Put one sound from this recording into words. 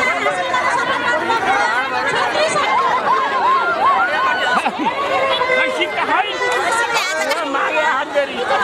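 A large crowd chatters and shouts excitedly outdoors.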